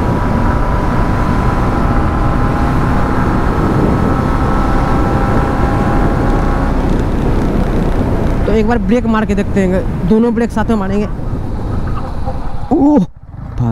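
Wind rushes loudly past.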